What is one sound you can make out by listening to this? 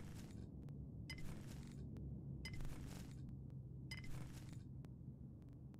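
Short bright chimes ring out several times.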